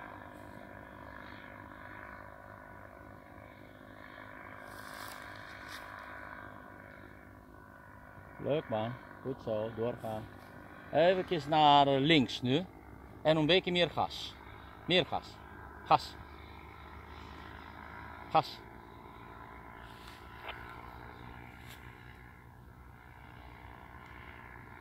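A small model plane's motor hums faintly in the distance.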